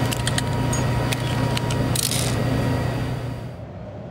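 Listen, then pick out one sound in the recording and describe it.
A revolver is reloaded with metallic clicks.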